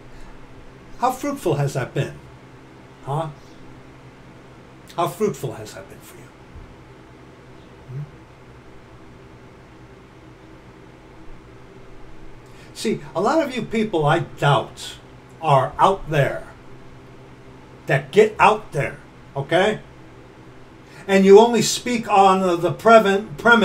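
A middle-aged man speaks with animation into a nearby microphone, in bursts with pauses.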